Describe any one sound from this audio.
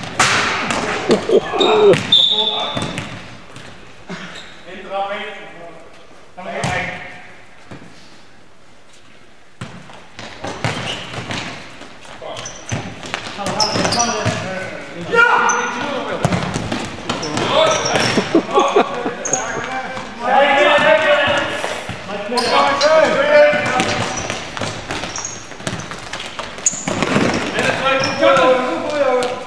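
A ball thuds as it is kicked.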